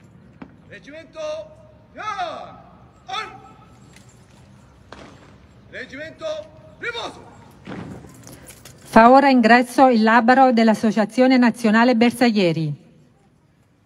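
A man calls out commands loudly over a loudspeaker.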